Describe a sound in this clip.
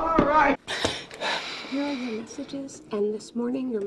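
A young woman speaks in a startled, hushed voice.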